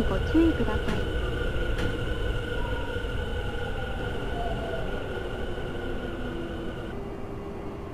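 An electric train motor whines steadily.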